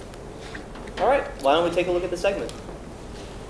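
Young men laugh close by.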